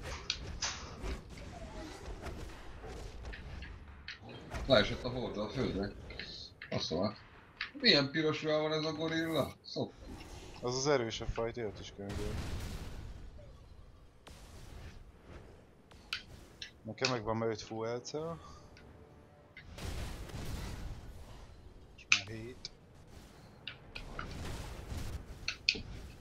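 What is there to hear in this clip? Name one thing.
Sharp blows and impacts land in a fight.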